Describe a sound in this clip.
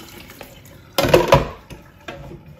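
A plastic bowl knocks against a metal sink.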